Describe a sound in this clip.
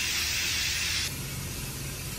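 A spray bottle hisses in a short burst.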